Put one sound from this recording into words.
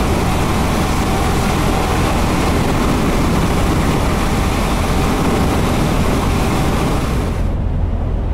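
Wind and tyre noise roar loudly past a moving truck.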